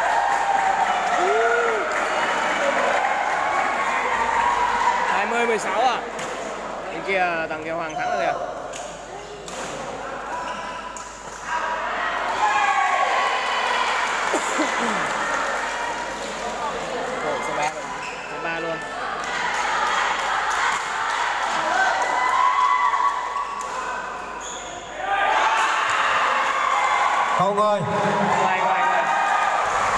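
A crowd of spectators chatters and cheers, echoing in a large hall.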